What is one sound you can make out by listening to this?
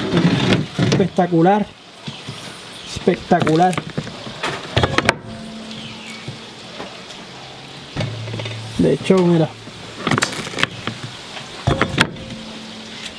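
A wooden press thumps down, flattening soft fruit.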